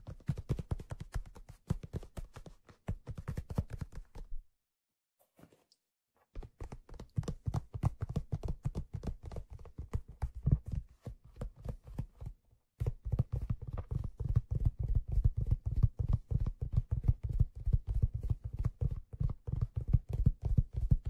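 Fingers tap and scratch rapidly on a leather-covered object close up.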